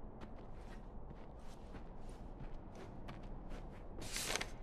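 Footsteps tread softly across a floor.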